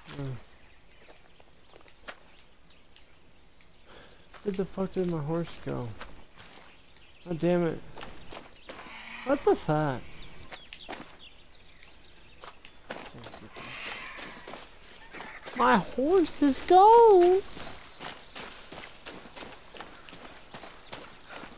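Footsteps crunch on grass and dirt.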